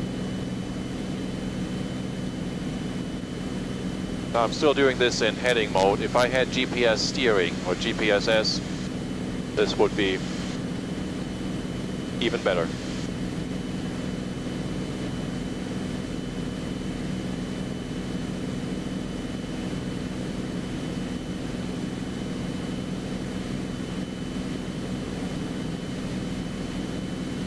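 A light aircraft engine drones steadily throughout.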